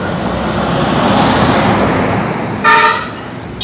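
A bus rumbles past close by.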